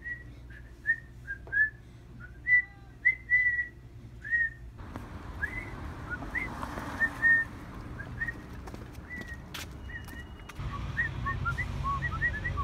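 A young boy whistles short, chirpy notes close by.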